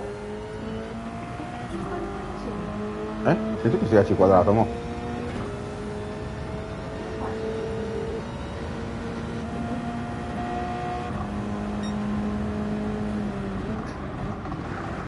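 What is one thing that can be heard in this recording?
A racing car engine drones and shifts pitch as it speeds up and slows down.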